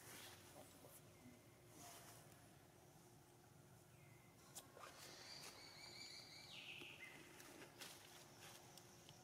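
Branches rustle softly as monkeys shift about.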